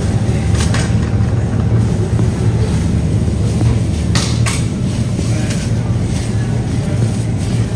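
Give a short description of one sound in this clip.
Potatoes knock together as they drop into a bag.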